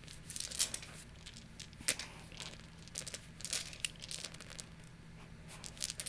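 Dice clatter and roll across a table.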